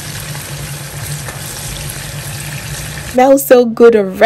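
Food simmers and sizzles gently in a pan.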